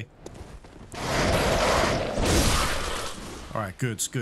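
A heavy blade swings and slashes into flesh.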